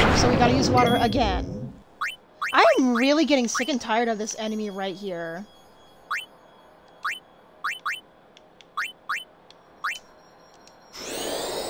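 Short menu beeps click one after another.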